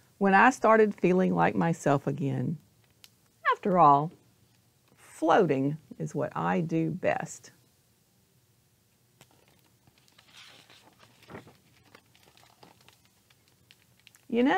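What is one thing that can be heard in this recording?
A middle-aged woman reads aloud expressively, close to a microphone.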